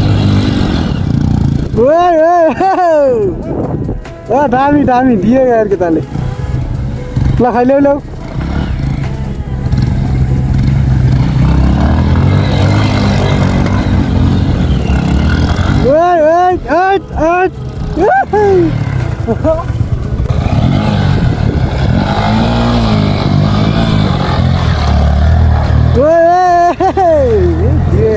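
A motorcycle engine idles and revs up and down sharply, again and again.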